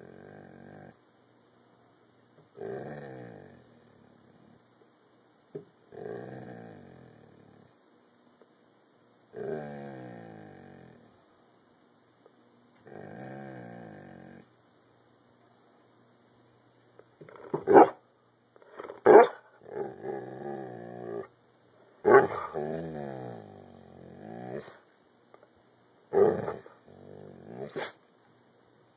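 A dog howls and whines in long, wavering cries, close by.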